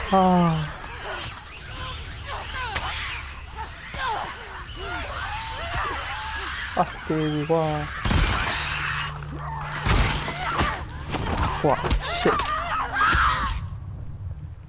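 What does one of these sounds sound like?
A monster snarls and shrieks up close.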